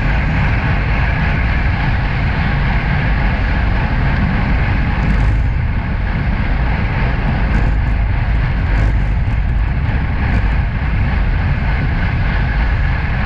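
Bicycle tyres hum steadily on a rough road.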